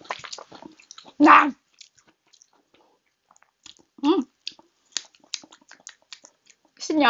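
A crisp pastry crackles and crunches as it is broken apart.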